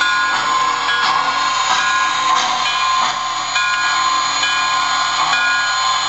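Steam hisses softly from a model locomotive.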